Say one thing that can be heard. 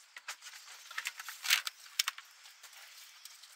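A plastic battery box lid knocks shut.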